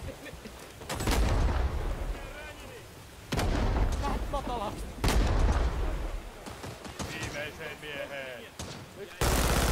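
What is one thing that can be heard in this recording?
Rifle shots crack loudly, one at a time, with a rumble after each.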